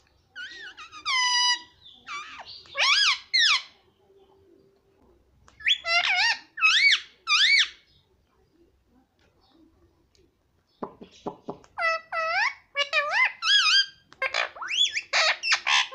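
An Alexandrine parakeet gives loud, rising and falling screeches in bursts.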